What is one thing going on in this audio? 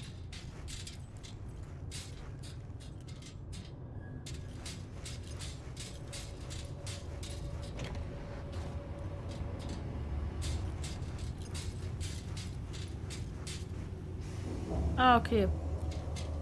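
Footsteps clank steadily on metal stairs and grating.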